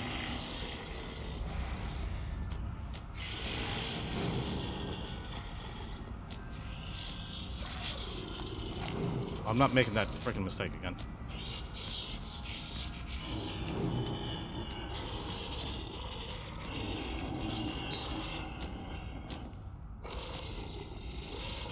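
Footsteps shuffle slowly over a gritty floor.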